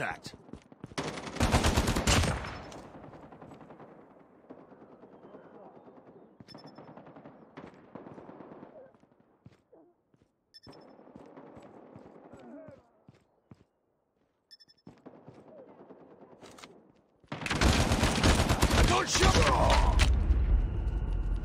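Gunfire from a rifle rattles in rapid bursts.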